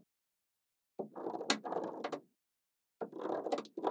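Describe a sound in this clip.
Small magnetic balls rattle and clatter softly as they are handled.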